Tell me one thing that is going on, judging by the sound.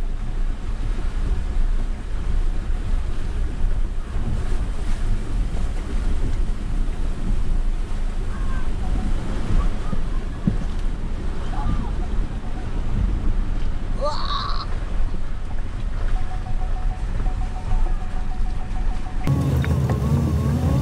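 A car engine rumbles steadily from inside a slowly moving vehicle.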